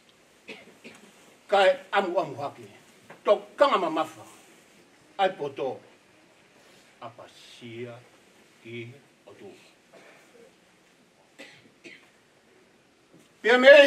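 A middle-aged man speaks with emotion into a microphone, pausing between phrases.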